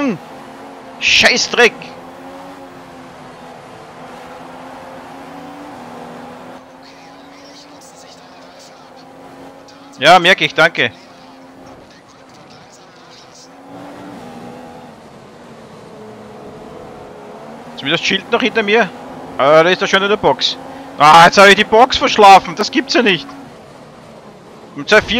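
A racing car engine whines steadily at high speed.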